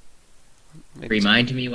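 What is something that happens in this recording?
A young man speaks close to a microphone.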